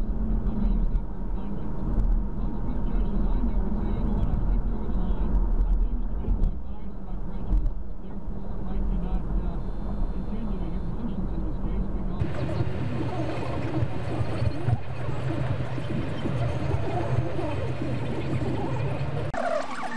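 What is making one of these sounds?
A car engine hums steadily as tyres roll over a highway.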